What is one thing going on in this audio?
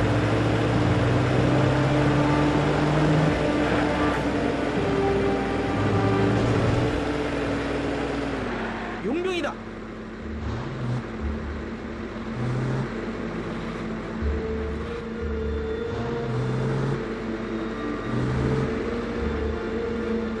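A vehicle engine hums steadily as it drives along.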